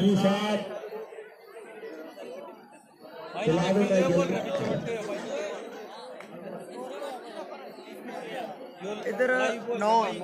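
Men talk and call out loudly close by, outdoors.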